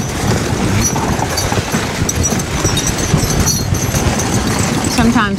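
A sled's runners hiss over snow.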